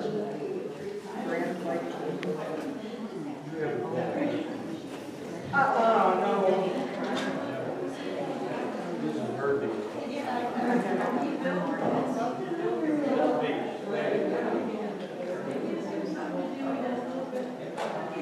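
A crowd of adult men and women chat nearby in a large indoor hall.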